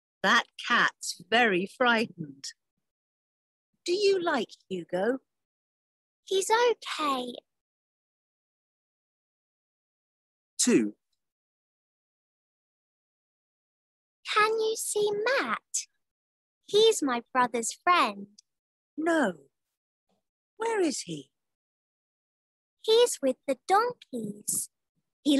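A woman speaks slowly and clearly over an online call, with pauses.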